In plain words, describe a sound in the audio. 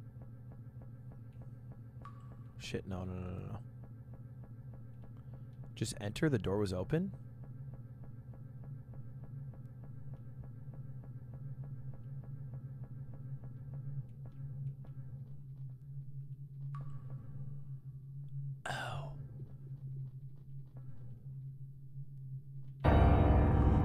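A low, steady droning hum plays quietly.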